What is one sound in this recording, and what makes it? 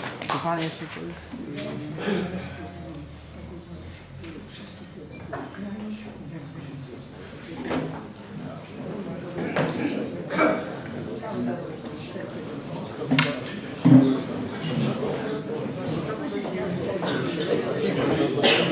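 An elderly man speaks quietly close by.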